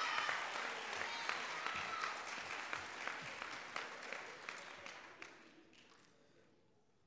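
An audience applauds in a large room, and the clapping slowly fades away.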